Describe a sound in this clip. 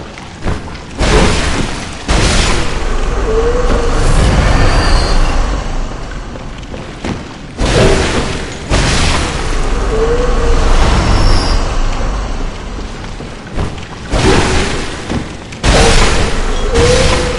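Heavy blows strike and burst with a loud roaring whoosh.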